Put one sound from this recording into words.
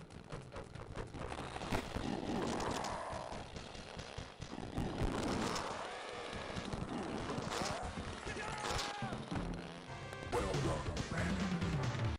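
Heavy blows land with thuds.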